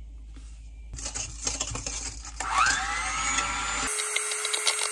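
An electric hand mixer whirs loudly in a bowl.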